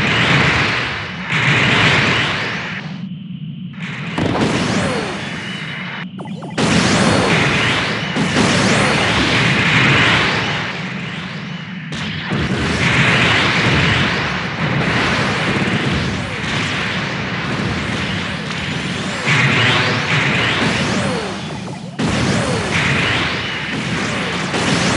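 Rocket thrusters roar in loud bursts.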